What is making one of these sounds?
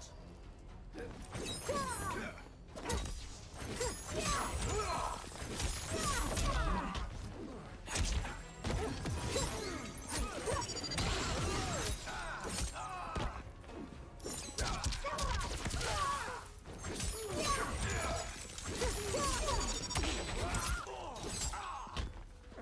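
Punches and kicks land with heavy thuds in quick bursts.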